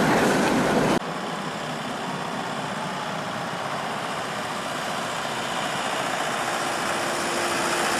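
A tram approaches along the street with a low rumble.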